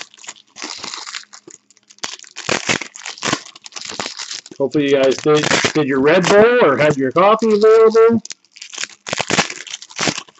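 Plastic wrappers crinkle and rustle as hands tear them open.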